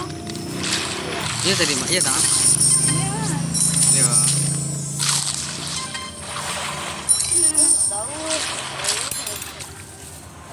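Cartoonish crunching bites and splashing bursts sound again and again underwater.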